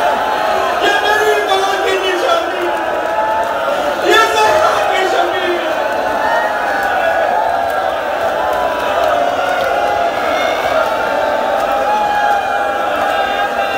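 A crowd of men chant along together.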